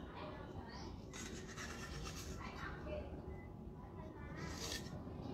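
Liquid pours and splashes into a metal bowl.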